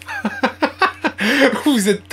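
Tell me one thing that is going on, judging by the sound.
A young man laughs hard, close by.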